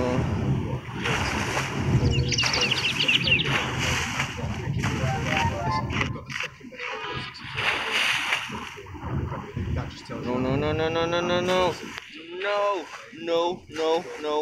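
Water splashes loudly as a shark leaps out and dives back in.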